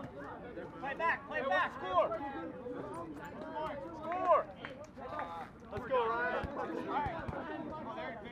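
Young men shout and call to each other outdoors.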